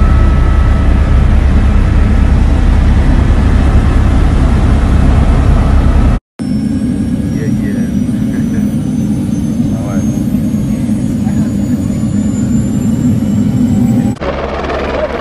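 A helicopter engine roars loudly inside the cabin.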